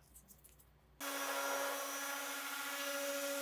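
A random orbital sander whirs against wood.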